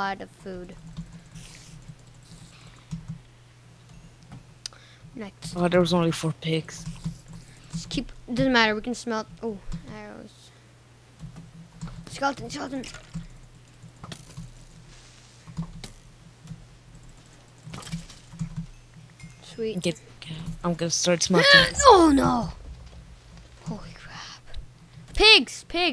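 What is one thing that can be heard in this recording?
A young person talks with animation close to a microphone.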